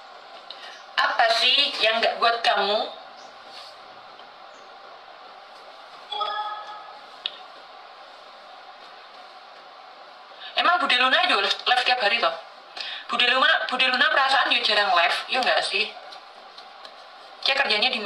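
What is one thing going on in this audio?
A young woman speaks casually and close to a phone microphone.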